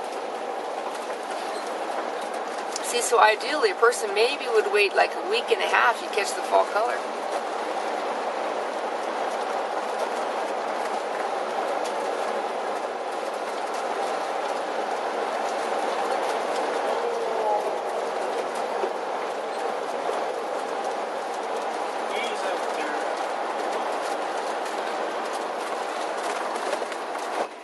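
Tyres roll on smooth pavement.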